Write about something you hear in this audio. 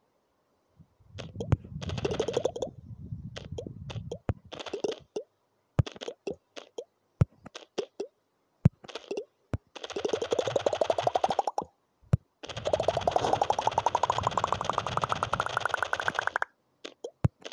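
A game ball smashes through stacked rings with rapid bursts and a rising tone.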